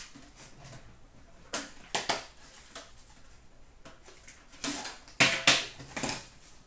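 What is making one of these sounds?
Plastic packaging crinkles and rustles in hands.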